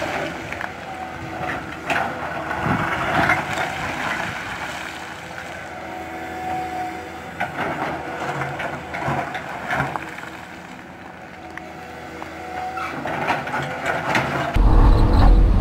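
An excavator engine rumbles steadily outdoors.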